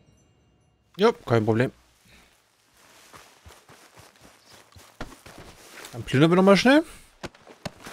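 A man grunts and yells while fighting.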